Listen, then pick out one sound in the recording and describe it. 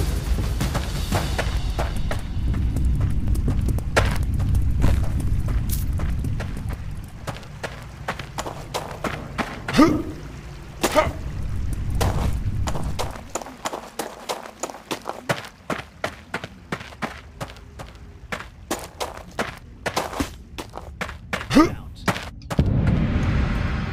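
Footsteps fall steadily on stone.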